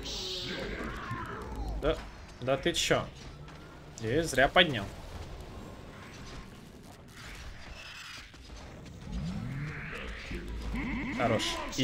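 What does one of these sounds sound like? Game spells whoosh and zap in quick bursts.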